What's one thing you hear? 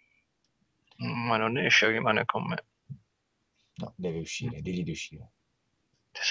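A second man answers calmly, close to a microphone.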